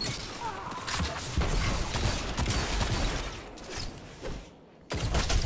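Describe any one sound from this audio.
Gunfire from a game rifle rattles in quick bursts.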